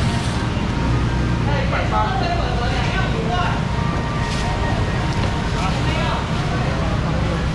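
Voices of a crowd murmur and chatter nearby.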